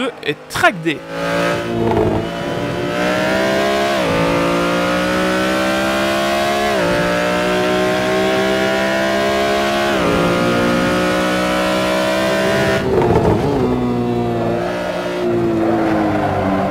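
A racing car engine roars, climbing steadily in pitch and dropping sharply at each gear change.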